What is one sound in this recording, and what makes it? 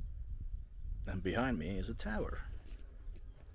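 A young man speaks close to the microphone.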